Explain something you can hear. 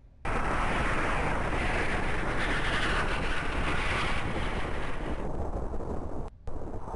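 Rocket engines roar loudly and steadily.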